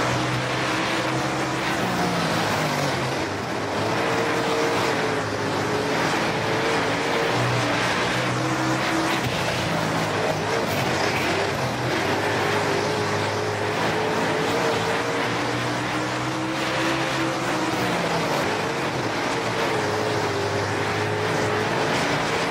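A race car engine roars loudly, revving up and down as it shifts gears.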